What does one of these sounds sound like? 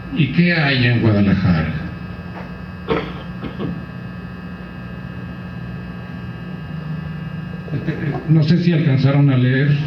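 A woman speaks through a loudspeaker in a large room, her voice echoing.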